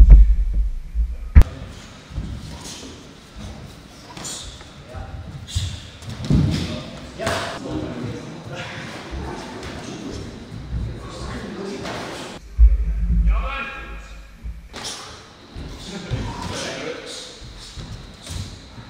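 Punches and kicks thud against padded gloves.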